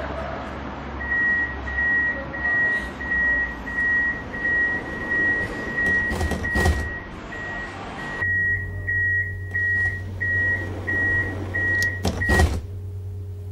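A tram door warning beeps rapidly and repeatedly.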